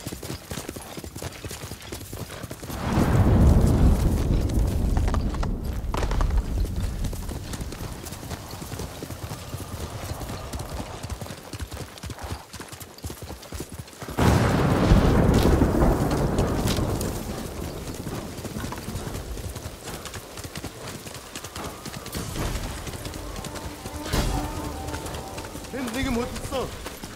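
A horse gallops with rapid hoofbeats.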